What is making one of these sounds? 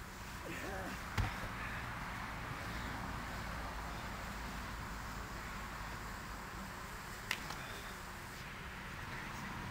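Bodies thump onto a padded mat outdoors.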